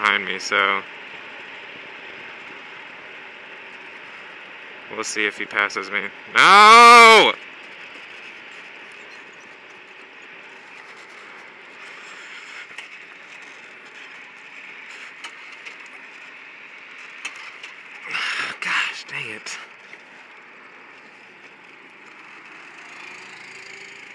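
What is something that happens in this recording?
A go-kart engine drones steadily up close.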